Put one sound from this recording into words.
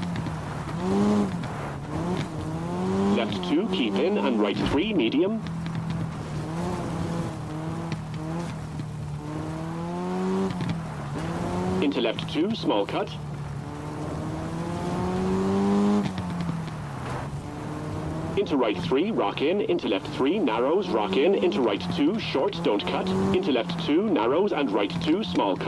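Tyres crunch and skid over loose gravel.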